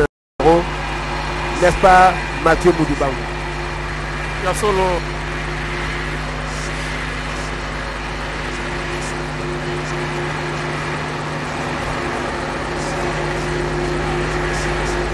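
A jet airliner's engines hum steadily as the plane taxis slowly.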